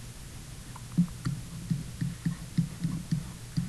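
A pen taps and scratches on a writing surface.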